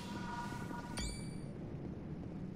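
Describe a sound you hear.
A fireball bursts with a roar.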